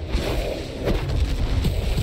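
A magical blast bursts with a heavy boom.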